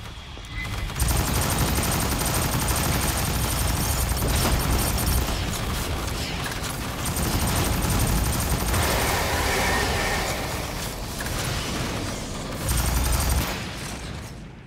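Automatic gunfire rattles.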